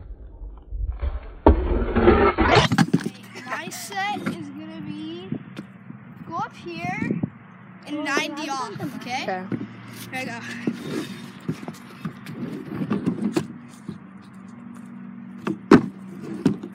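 A scooter's wheels roll and clatter over wooden boards.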